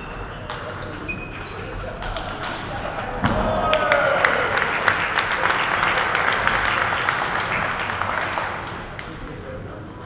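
A ping-pong ball clicks back and forth between paddles and table.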